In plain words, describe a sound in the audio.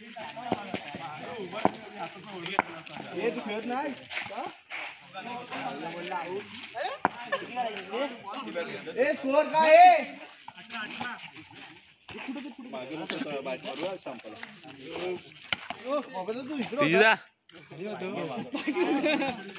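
Several young men talk and shout to each other outdoors.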